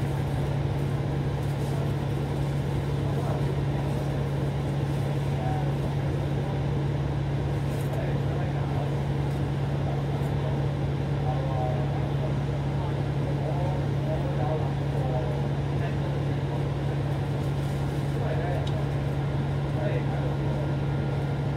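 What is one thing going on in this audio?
A bus engine idles with a steady low hum close by.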